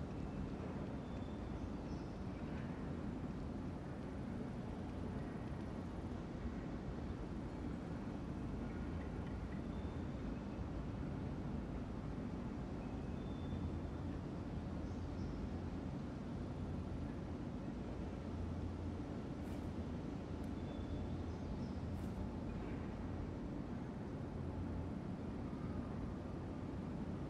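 A ceiling fan hums steadily overhead.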